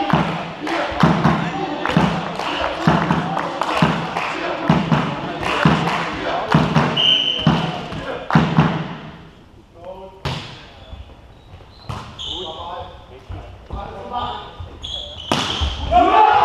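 A volleyball is struck again and again, the hits echoing in a large hall.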